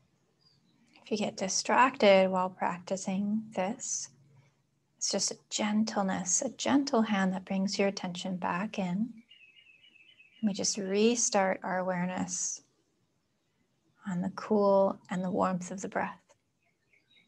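A young woman speaks slowly and calmly, close by.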